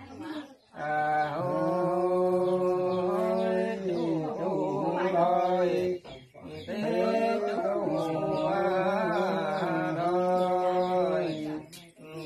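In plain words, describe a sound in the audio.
An elderly man chants in long, drawn-out phrases close by.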